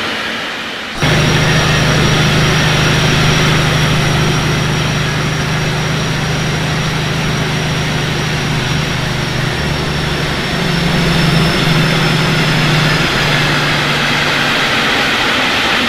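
A diesel train engine hums steadily.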